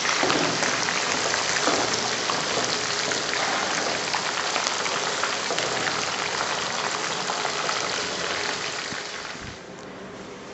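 Hot oil sizzles and crackles steadily as chicken fries.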